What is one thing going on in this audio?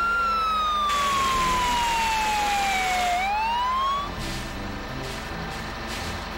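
A fire truck engine rumbles as the truck drives.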